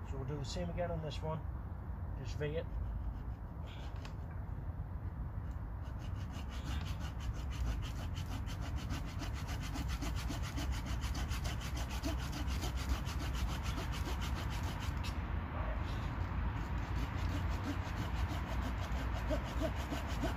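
A hand saw rasps back and forth through a branch.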